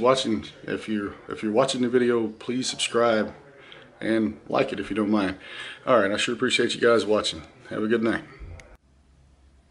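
A man speaks calmly and earnestly, close by.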